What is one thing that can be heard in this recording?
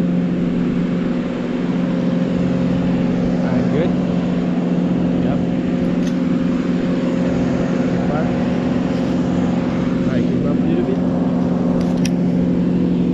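An engine hums steadily below.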